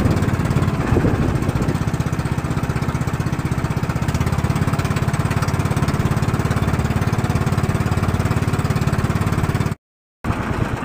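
A boat engine chugs steadily and loudly.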